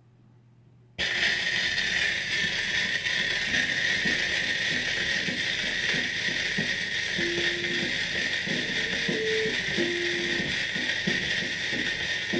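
Old music plays from a gramophone record.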